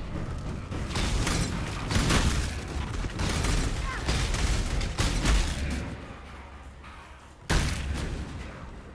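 Blasts boom loudly over and over.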